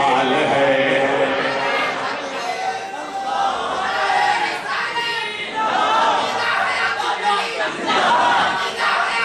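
A man preaches passionately into a microphone, heard through loudspeakers in an echoing hall.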